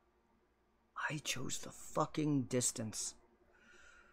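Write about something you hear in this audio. A young man speaks close to a microphone, with animation.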